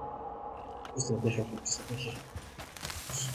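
A young man talks into a microphone, close by.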